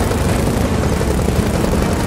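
A motorcycle engine rumbles.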